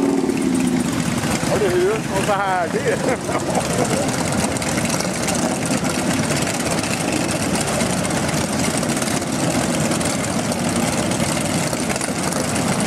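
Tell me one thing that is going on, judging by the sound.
Many motorcycle engines idle and rumble loudly nearby.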